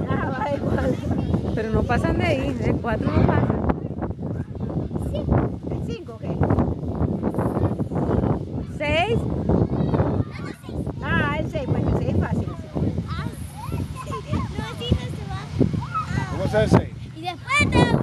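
A young boy talks and shouts excitedly close by.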